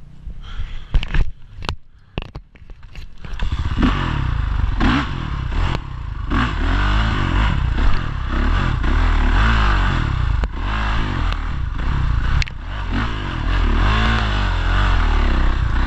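Tyres thump over bumps on a dirt trail.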